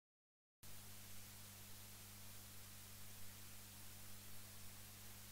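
A spinning vinyl record hisses and crackles softly.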